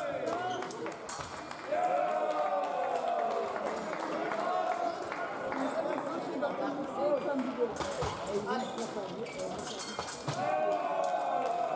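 Fencing blades clash and scrape sharply.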